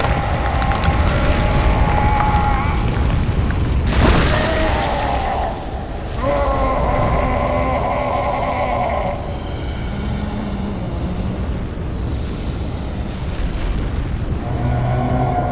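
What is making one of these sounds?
Flames burst and roar up close.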